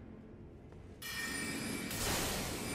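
A magic spell shimmers and hisses.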